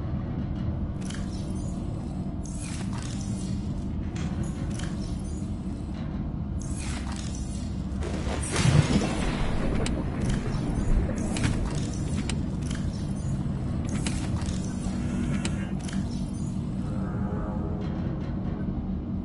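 Short electronic interface clicks and chimes sound now and then.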